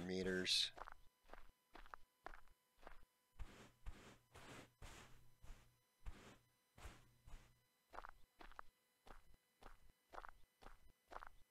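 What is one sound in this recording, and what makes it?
Footsteps crunch steadily on dry, gritty ground at a walking pace.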